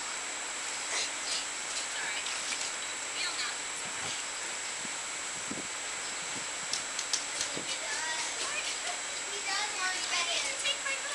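A child splashes and paddles in water nearby.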